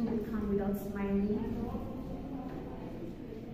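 A young woman speaks with emotion close by.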